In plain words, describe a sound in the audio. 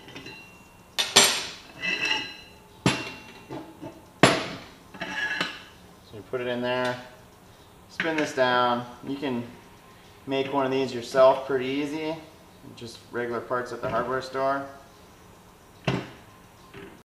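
Metal parts clank against each other on a workbench.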